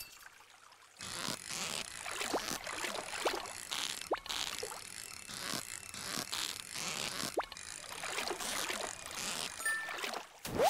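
A fishing reel whirs and clicks steadily as a fish is reeled in.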